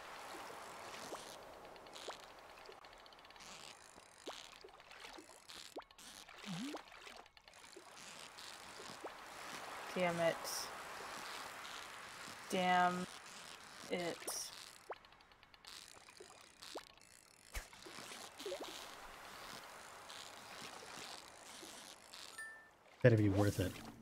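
A fishing reel whirs steadily as a fish is reeled in.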